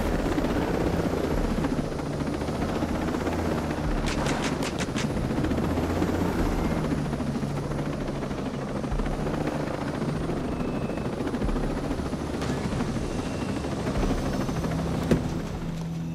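A helicopter's rotor thumps and its engine drones steadily.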